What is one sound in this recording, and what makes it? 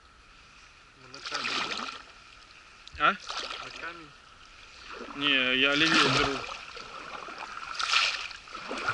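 Water splashes softly against the bow of a small boat.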